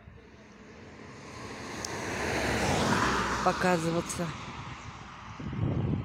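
A car drives past on the road, rising and then fading.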